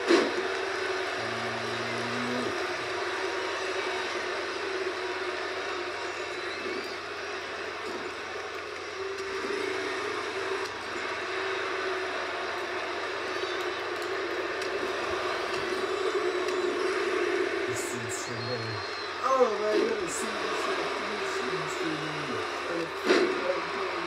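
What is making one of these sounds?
A crowd cheers and roars steadily through a television speaker.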